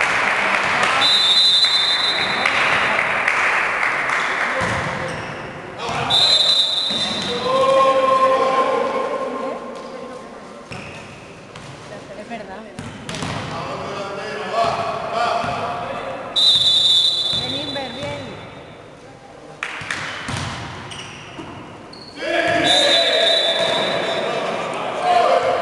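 A whistle blows shrilly several times.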